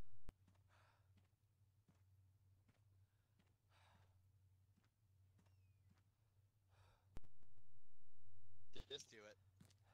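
Footsteps scuff across hard ground.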